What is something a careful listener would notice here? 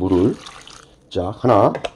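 Dry corn kernels rattle as they pour into a metal pot.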